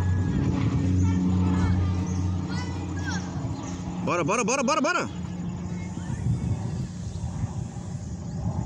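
Children call out in the distance outdoors.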